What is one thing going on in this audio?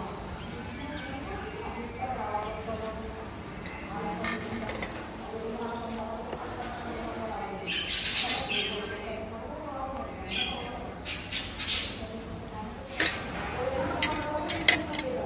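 Parrots peck and crunch on fruit with small clicks.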